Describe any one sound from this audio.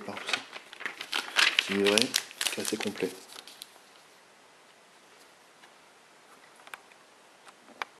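A glossy paper booklet rustles and crinkles as it is handled.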